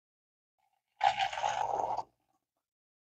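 Hot water pours from a kettle into a metal cup.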